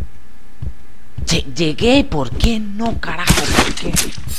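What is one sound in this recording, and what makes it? A blade strikes a body with a wet thud.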